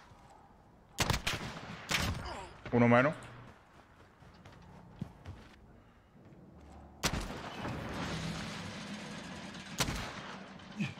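Gunshots crack sharply, several times.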